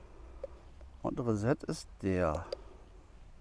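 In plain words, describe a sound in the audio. A middle-aged man speaks briefly and calmly into a clip-on microphone.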